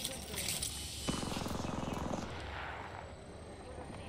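A medical kit is applied with soft rustling and clicks.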